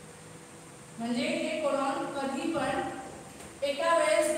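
A woman speaks clearly, as if teaching a class.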